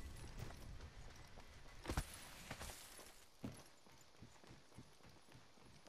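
Footsteps run quickly across ground.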